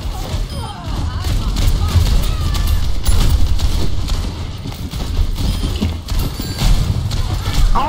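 Guns fire in rapid bursts with heavy booming blasts.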